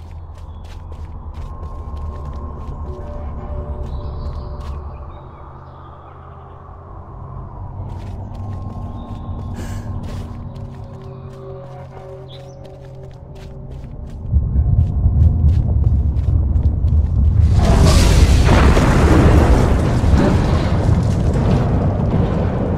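Light footsteps patter on stone.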